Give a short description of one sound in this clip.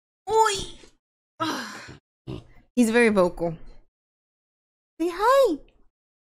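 A young woman talks playfully and with animation close to a microphone.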